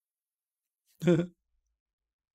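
A young man laughs briefly close to a microphone.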